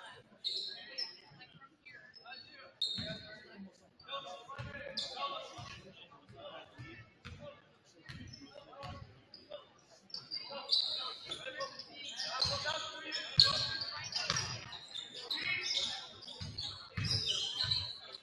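A basketball bounces on a hardwood floor with hollow thumps in an echoing gym.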